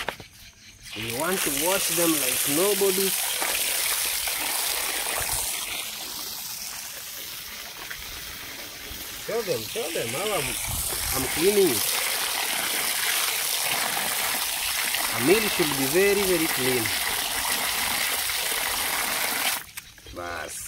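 Water gushes from a tap and splashes into a basin.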